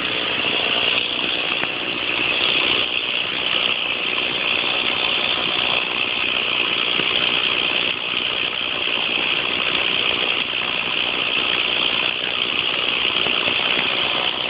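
A chainsaw engine runs steadily nearby.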